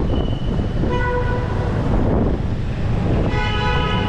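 A motorbike engine buzzes past close by.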